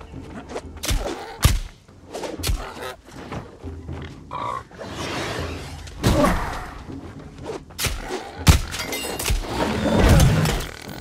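A beast grunts and squeals as it is hit.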